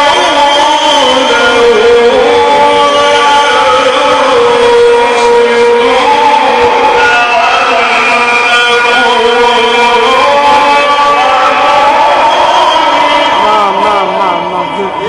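A man chants in long, drawn-out notes through a loudspeaker, echoing in a large space.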